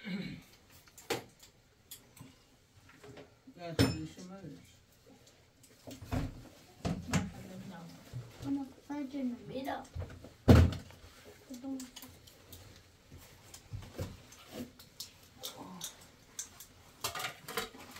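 Dishes and cutlery clink.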